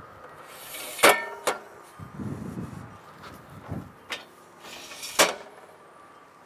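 Metal parts of a stand click and clatter as they are locked in place.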